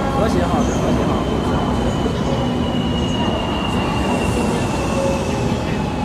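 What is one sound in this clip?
A high electric whine from the train holds steady, slowly dropping in pitch.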